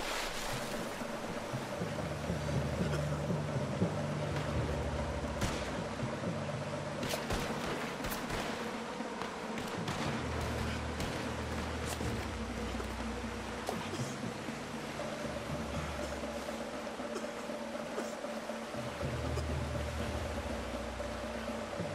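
Water splashes as a man swims through a current.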